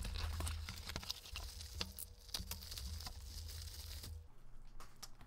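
Bubble wrap crinkles as it is unwrapped by hand.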